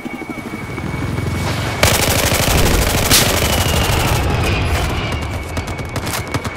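A helicopter's rotor thumps and whirs steadily.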